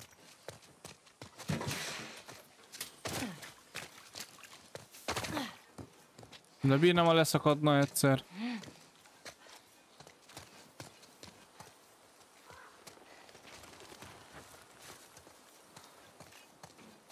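Footsteps tread on wet ground.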